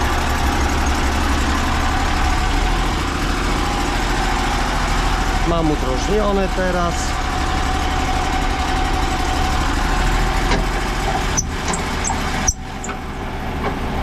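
An engine runs with a steady low drone nearby.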